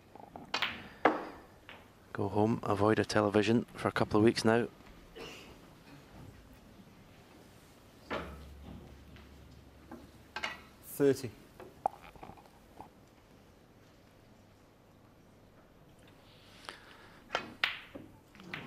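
Snooker balls knock together with a hard clack.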